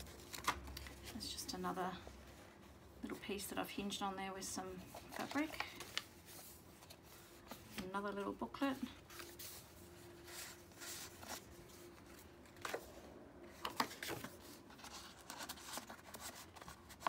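Paper pages rustle and flap as they are turned and handled.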